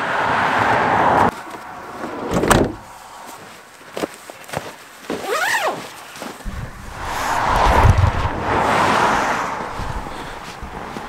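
Boots crunch in snow.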